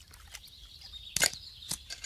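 Metal shears snip shut with a sharp click.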